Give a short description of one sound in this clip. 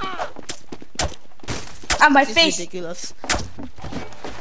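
A knife slashes and stabs with sharp thuds.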